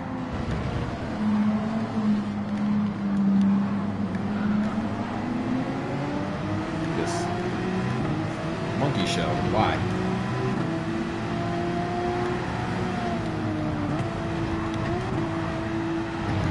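Other racing car engines whine close by.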